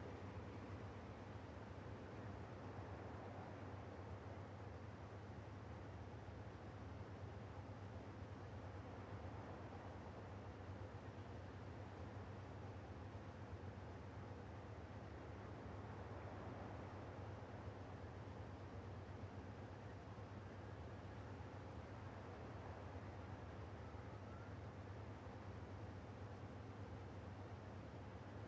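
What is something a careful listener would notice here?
A tank engine idles with a steady low rumble.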